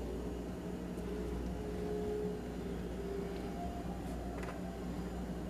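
Food is set down on a metal oven tray with faint clinks.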